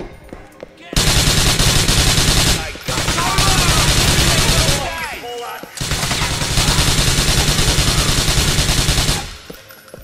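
A submachine gun fires rapid bursts that echo through a large hall.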